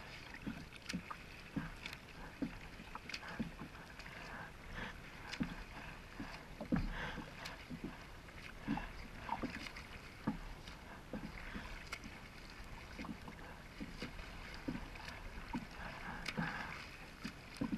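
Water splashes and sloshes close by as a swimmer strokes through it.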